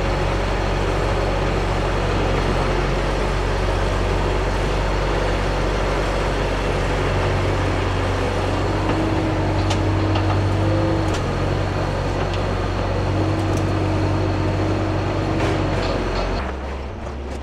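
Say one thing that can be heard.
A heavy machine's diesel engine rumbles loudly and steadily.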